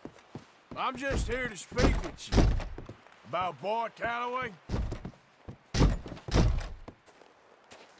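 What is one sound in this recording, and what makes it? A man knocks hard on a wooden door.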